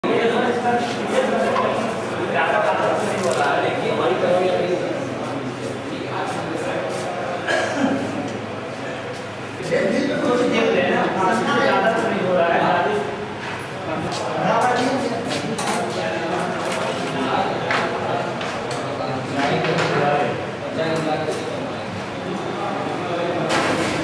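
Several men murmur in the background.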